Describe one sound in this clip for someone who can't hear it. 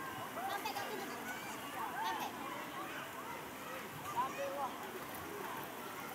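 A swimmer splashes through water.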